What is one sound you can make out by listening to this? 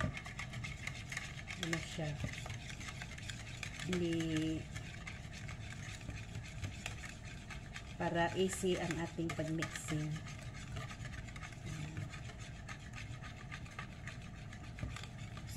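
A wire whisk clicks and rattles quickly against a plastic bowl.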